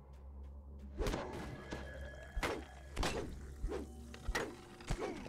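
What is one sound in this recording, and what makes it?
Heavy blows strike with loud, repeated thuds.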